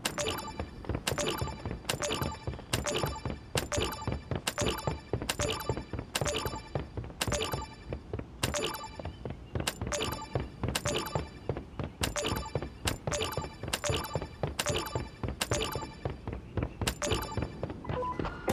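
Building pieces snap into place in a quick, steady rhythm.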